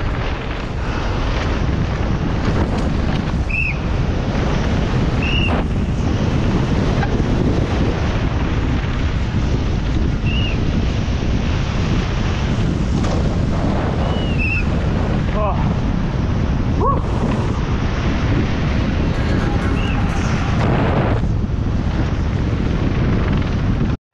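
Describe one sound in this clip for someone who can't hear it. Bicycle tyres rumble and crunch over dirt and gravel.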